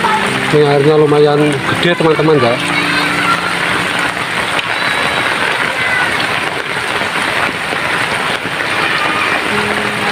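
Rainwater trickles along a muddy channel.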